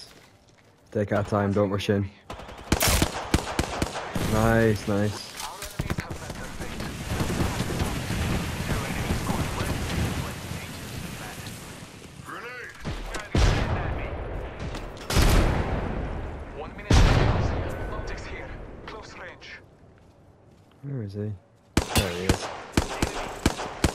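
A rifle fires sharp bursts of shots.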